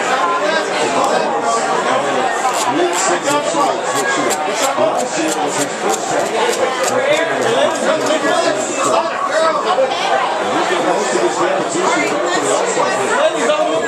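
A crowd of adults chatters all around at close range.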